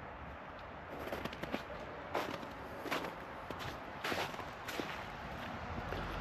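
Footsteps crunch on wet grass and mud.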